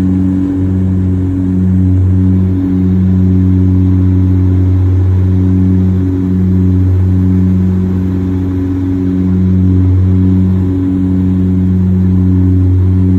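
A Saab 340 turboprop drones, heard from inside the cabin, with a low throbbing hum.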